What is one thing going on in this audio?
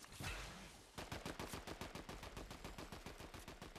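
Footsteps crunch rapidly on snow.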